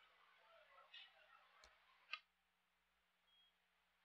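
A stone clicks onto a wooden game board.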